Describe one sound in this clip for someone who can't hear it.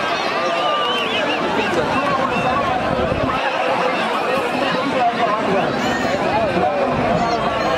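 A large crowd outdoors shouts and cheers loudly.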